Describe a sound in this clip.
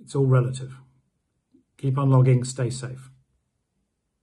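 A middle-aged man speaks calmly and close to the microphone.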